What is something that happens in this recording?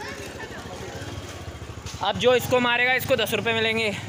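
A motorcycle pulls away.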